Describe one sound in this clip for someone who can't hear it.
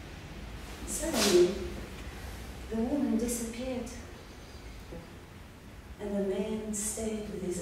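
A woman vocalises in long, wavering sung tones.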